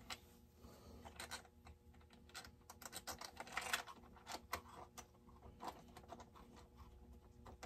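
Small metal parts click and tap close by.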